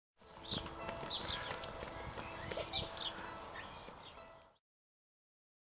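Hens cluck and chirp outdoors.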